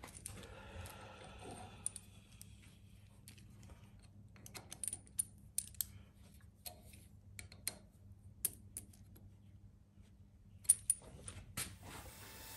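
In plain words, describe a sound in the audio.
Small metal tools click and tap together.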